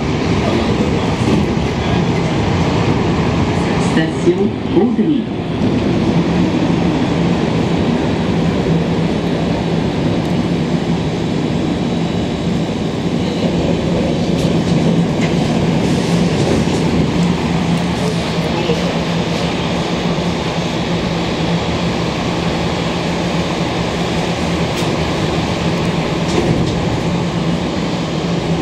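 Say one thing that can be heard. A subway train rumbles and hums steadily along the tracks.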